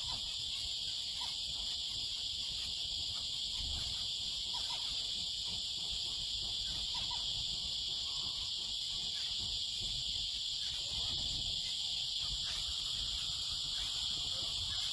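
Small finches chirp softly.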